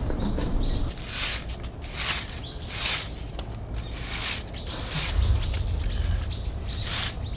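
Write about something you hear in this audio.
A bamboo broom sweeps the ground in brisk, scratchy strokes.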